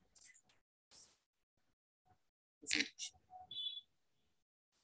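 A young woman speaks briefly over an online call.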